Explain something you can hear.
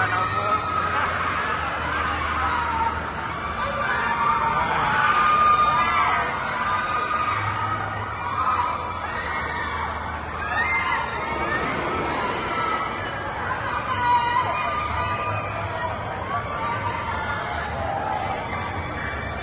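A fairground ride's machinery hums and whirs steadily.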